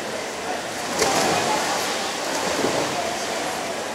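Swimmers splash into the water of a large echoing pool.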